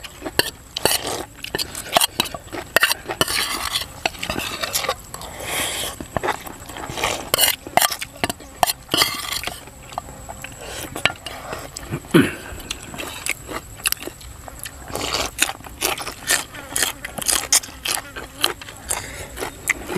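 A man and a woman slurp noodles loudly close by.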